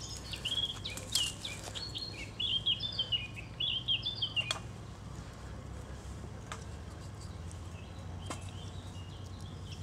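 A small wood fire crackles and pops.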